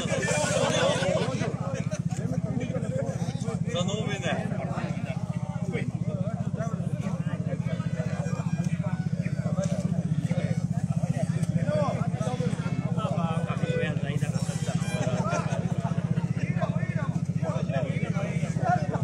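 A big bass drum beats in a steady, fast rhythm outdoors.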